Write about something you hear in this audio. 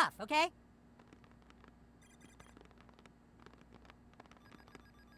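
Fingers tap quickly on a computer keyboard.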